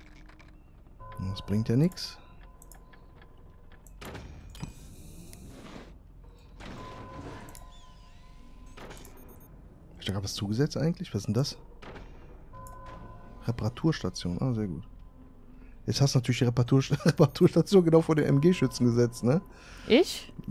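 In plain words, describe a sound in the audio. Short electronic tones sound from a game now and then.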